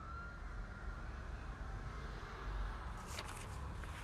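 Pages of a paperback book flip and rustle.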